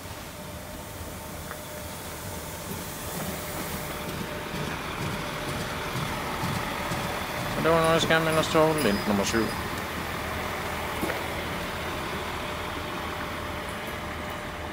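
A train rumbles past close by on the tracks, growing louder.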